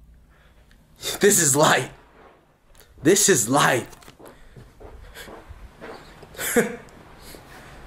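A young man talks with animation close up.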